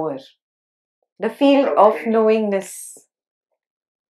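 A woman speaks calmly and softly into a microphone.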